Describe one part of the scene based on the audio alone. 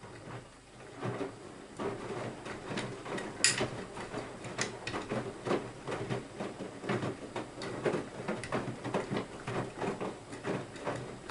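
Laundry thumps as a washing machine drum turns.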